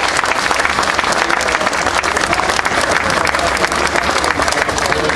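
A crowd claps steadily and loudly outdoors.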